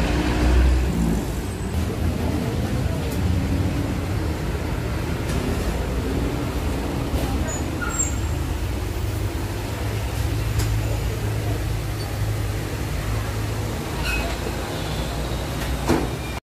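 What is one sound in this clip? Traffic rumbles steadily nearby.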